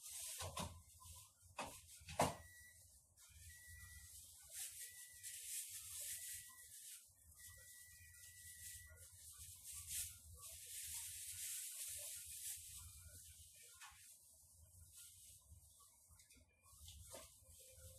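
Footsteps shuffle on a hard floor nearby.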